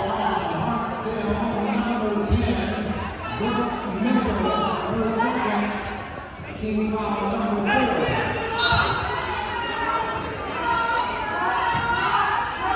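Men and women in a crowd chatter and call out nearby in a large echoing gym.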